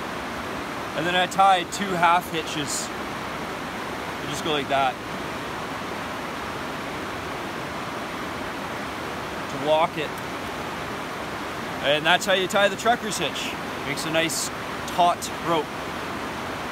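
A man speaks calmly close by, in short phrases with pauses.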